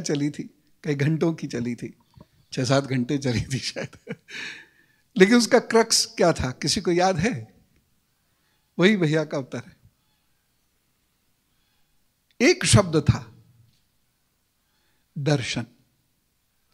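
A middle-aged man speaks with animation into a microphone, in short bursts with pauses.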